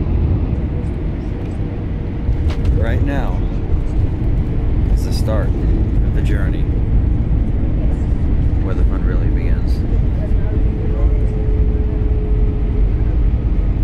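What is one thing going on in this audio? Tyres rumble on a runway as the plane lands.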